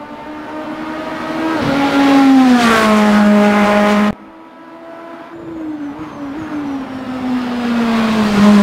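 A racing car engine roars loudly, its pitch falling as it shifts down and then climbing again as it speeds up.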